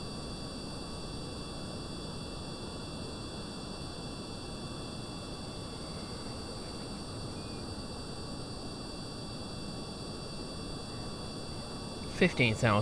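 A rocket engine rumbles steadily.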